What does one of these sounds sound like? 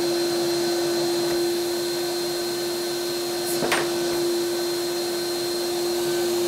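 A vacuum hose sucks up dust with a rushing noise.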